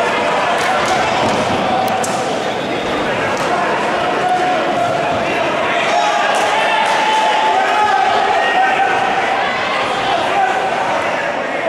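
Punches thud against bodies.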